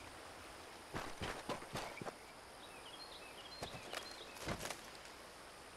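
Metal junk clatters as it is rummaged through.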